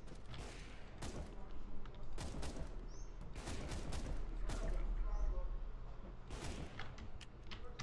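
Rifle shots ring out in sharp, echoing cracks.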